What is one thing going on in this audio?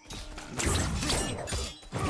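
A magic blast whooshes across the arena.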